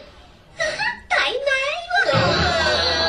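A young girl speaks in a giggly, embarrassed voice.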